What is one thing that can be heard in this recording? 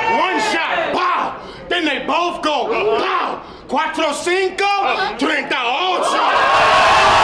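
A young man raps forcefully close to a microphone.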